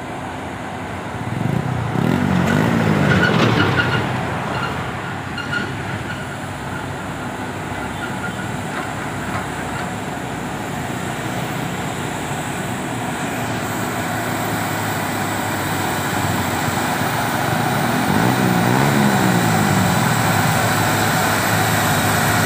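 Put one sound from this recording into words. A heavy truck engine rumbles as the truck climbs slowly toward the listener.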